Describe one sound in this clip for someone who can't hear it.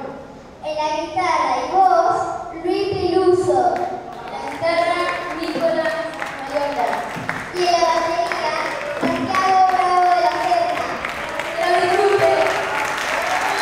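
A young boy speaks into a microphone over loudspeakers.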